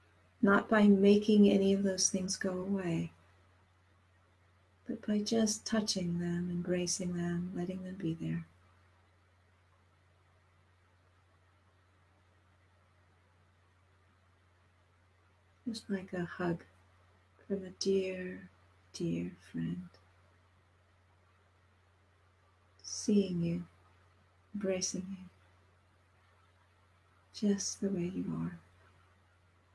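A middle-aged woman speaks calmly through an online call, pausing now and then.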